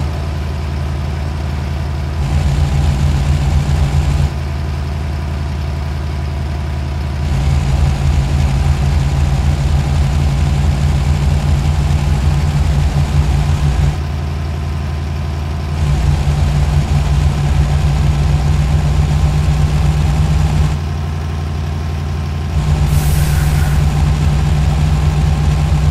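A heavy truck engine rumbles low and steady, swelling louder at intervals.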